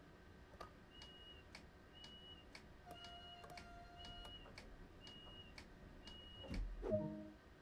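A door warning beeps repeatedly.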